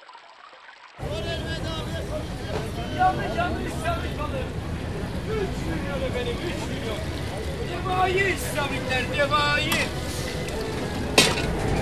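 A mass of fish flap and slither against each other.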